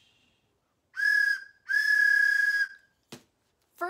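A wooden whistle blows two shrill, steady toots.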